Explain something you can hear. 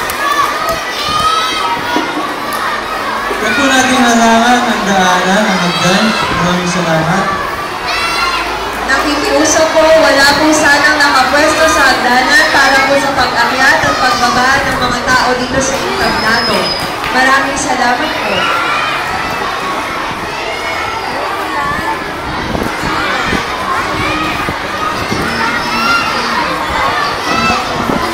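A crowd of children chatters and calls out nearby.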